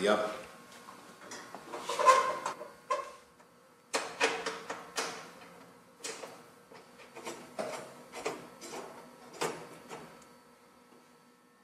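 Metal oven racks clatter and clink as they slide in and out.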